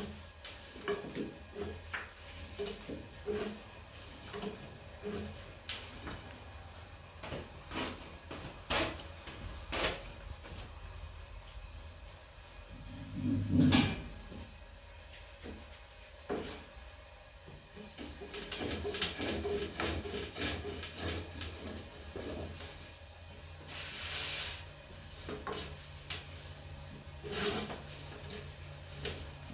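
A rolling pin thumps and rolls on a wooden board.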